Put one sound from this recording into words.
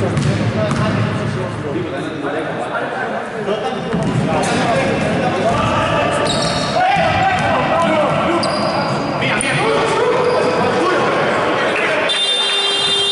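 Sneakers squeak on a wooden court in a large echoing hall.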